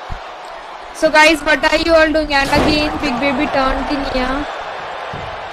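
A young woman shouts excitedly close to a microphone.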